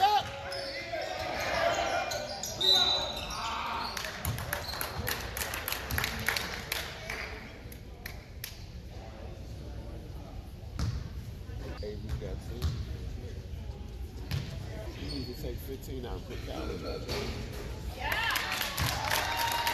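A crowd of spectators cheers and chatters in an echoing gym.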